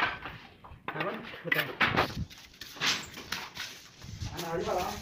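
Trowels scrape and clink against mortar and bricks.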